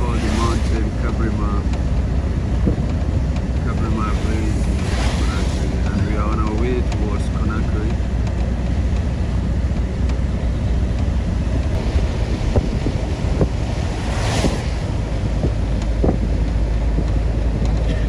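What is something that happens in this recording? Strong wind blows steadily, rustling tree leaves and buffeting outdoors.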